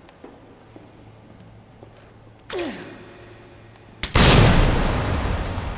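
Heeled footsteps tap on a hard floor.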